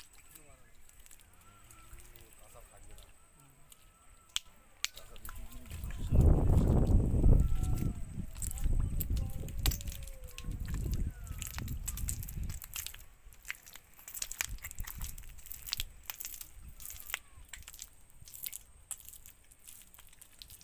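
Footsteps squelch through wet mud.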